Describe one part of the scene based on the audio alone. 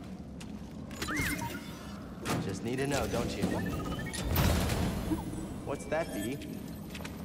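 A small robot chirps and warbles.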